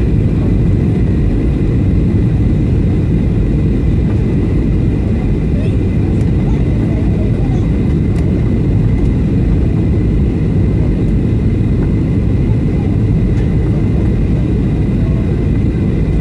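A steady high whine hums from the engines.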